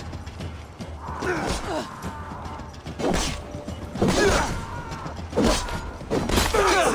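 Blades clash and thud in a close fight.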